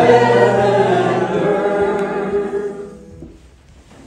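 A middle-aged woman sings close by, holding a note.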